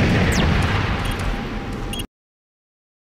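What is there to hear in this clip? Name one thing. An electronic panel beeps softly.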